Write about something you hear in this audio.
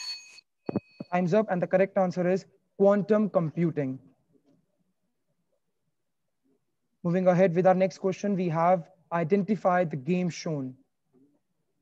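A young man speaks calmly over an online call.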